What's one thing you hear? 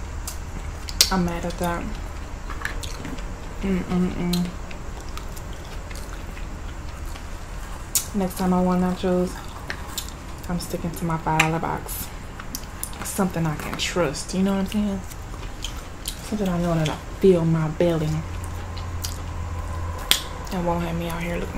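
A young woman talks calmly and close to a microphone.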